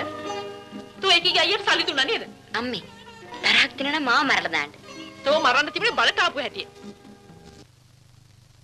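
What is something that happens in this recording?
A woman speaks loudly and with animation.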